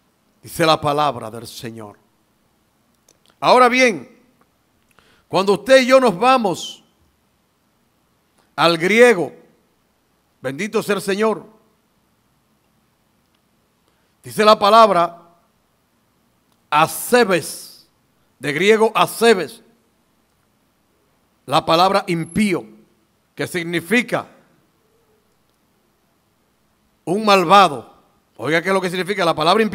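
A man speaks calmly into a headset microphone, in short phrases with pauses.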